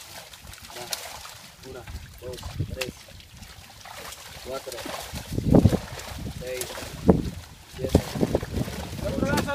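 Young men talk with animation close by.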